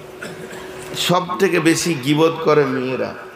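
An elderly man speaks in a tremulous, emotional voice through a loudspeaker.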